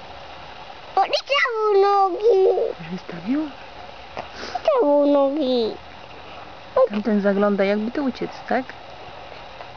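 A young child speaks excitedly close by.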